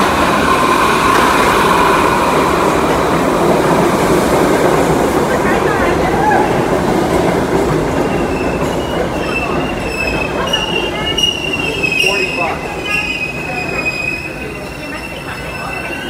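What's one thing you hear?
A subway train rushes past with a loud rumbling roar.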